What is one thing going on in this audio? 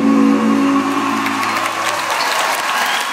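A rock band plays amplified electric guitars and drums.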